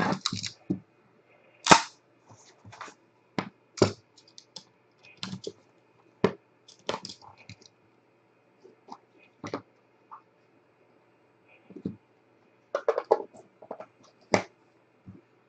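Cardboard boxes and cards tap and rustle as they are handled.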